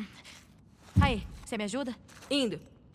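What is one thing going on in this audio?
A young woman calls out quietly, asking a question.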